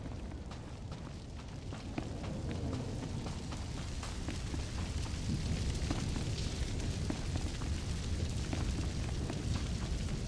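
A fire roars and crackles nearby.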